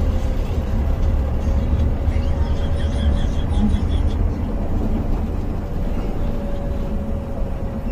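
A bus engine hums steadily while driving on a road.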